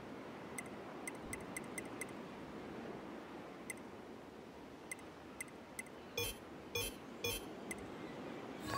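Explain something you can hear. Short electronic menu blips tick one after another.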